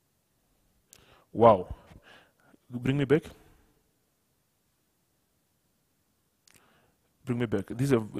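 A man speaks in short, measured phrases with long pauses.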